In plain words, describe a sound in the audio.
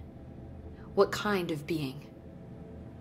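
A young woman asks a short question calmly.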